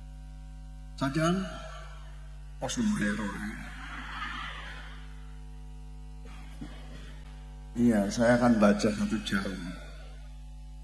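An elderly man chants in a drawn-out, melodic voice through a microphone and loudspeakers, in bursts with pauses.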